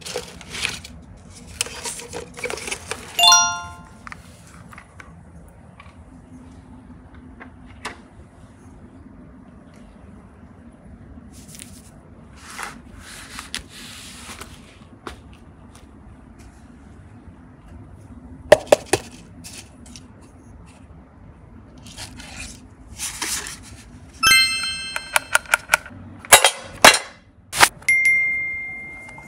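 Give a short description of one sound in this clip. Small plastic toys click and clatter as a hand sets them down.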